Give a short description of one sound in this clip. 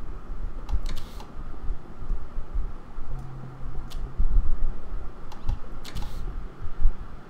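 Soft interface clicks and blips sound as menu items are selected.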